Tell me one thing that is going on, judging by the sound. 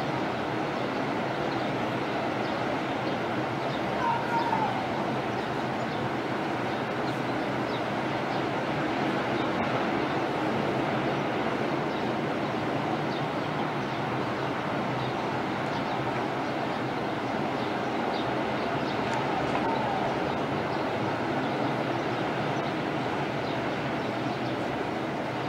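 Waves break and wash steadily onto the shore.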